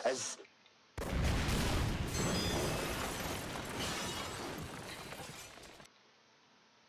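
An explosion bursts with a loud roar and slowly rumbles away.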